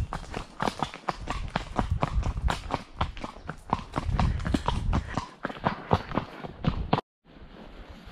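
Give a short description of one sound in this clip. Horse hooves clop steadily on a hard path.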